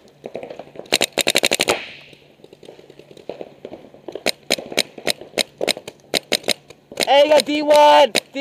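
A paintball marker fires in quick bursts of sharp pops.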